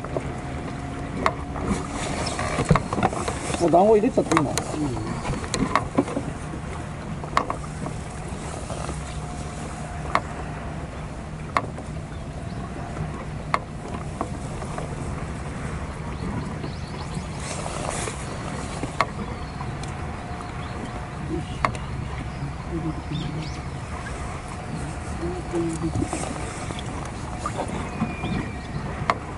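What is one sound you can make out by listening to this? Water laps softly against a small boat.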